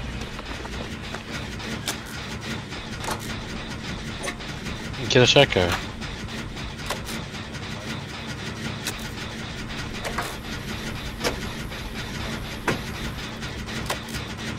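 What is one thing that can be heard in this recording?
A petrol engine generator rumbles and rattles as it is worked on by hand.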